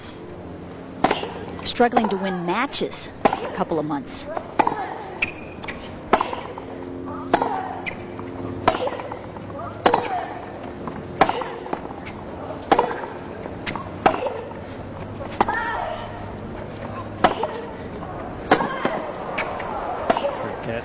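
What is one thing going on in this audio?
A tennis ball is struck back and forth in a steady rally.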